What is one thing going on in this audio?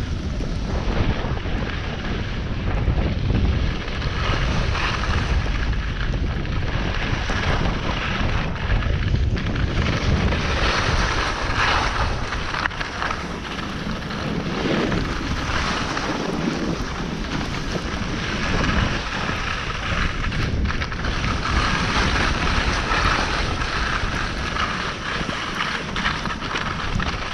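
Skis hiss and scrape over snow throughout.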